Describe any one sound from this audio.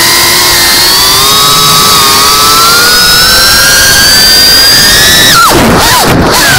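Small drone propellers whine loudly and steadily, slowly rising in pitch, then dipping and wavering sharply.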